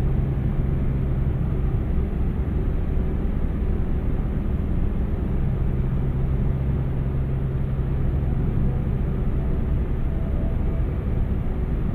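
A truck's diesel engine hums steadily while driving.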